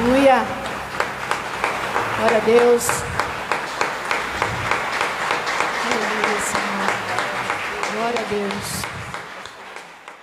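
A woman sings into a microphone, heard through loudspeakers.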